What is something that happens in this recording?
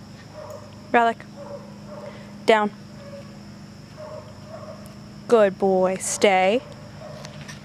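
A dog barks sharply in short, loud bursts close by.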